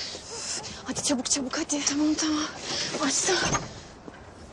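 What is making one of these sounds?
A young woman speaks urgently and breathlessly close by.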